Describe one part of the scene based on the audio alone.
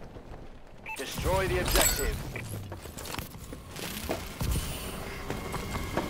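A video game's electronic sound effects whoosh and chime.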